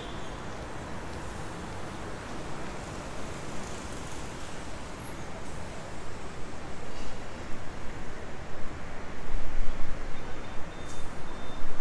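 Traffic hums along a nearby road.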